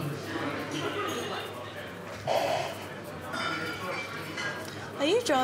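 A young woman talks softly and shyly, close by.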